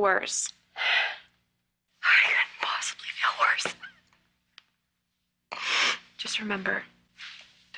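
A woman sobs.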